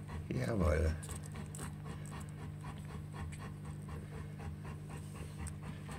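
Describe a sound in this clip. A newborn puppy suckles with soft wet smacking sounds.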